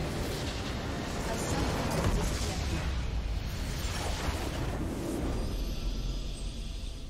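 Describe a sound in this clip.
A crystal structure in a video game blows up with a deep, rumbling blast.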